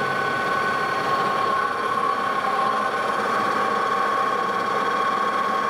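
A cutting tool scrapes and hisses against spinning steel.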